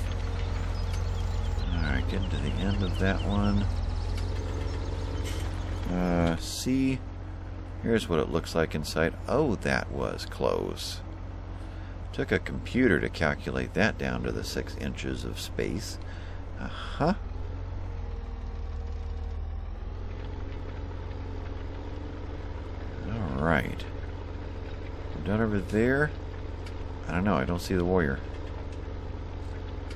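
A tractor engine hums steadily at low pitch.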